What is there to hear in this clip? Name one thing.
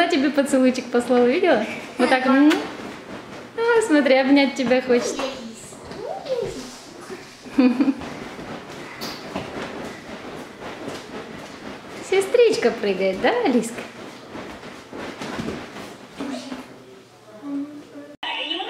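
A young girl talks and squeals excitedly close by.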